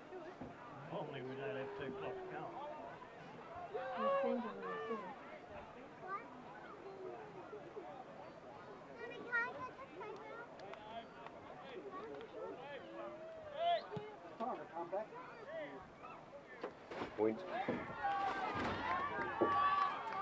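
Men and boys shout and call out across an open field outdoors.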